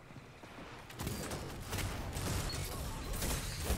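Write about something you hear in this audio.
Gunshots crack rapidly in a game.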